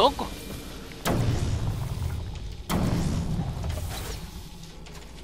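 An explosion bursts with a deep, rumbling boom.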